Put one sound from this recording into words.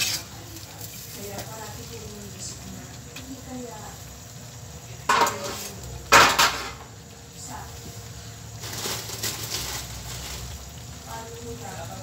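Food bubbles and sizzles in a pan.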